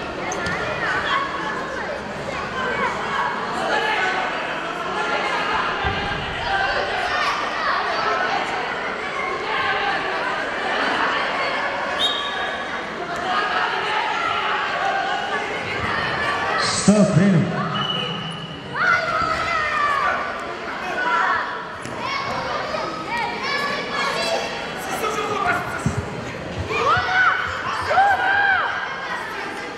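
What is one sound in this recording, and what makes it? A referee shouts commands at the wrestlers.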